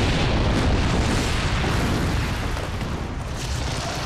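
Rubble crashes and rumbles as a floor collapses.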